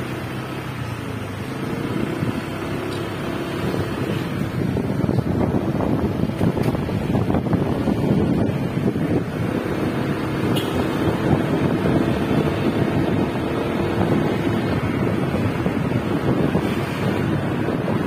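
A motorbike engine hums steadily close by as it rides along a street.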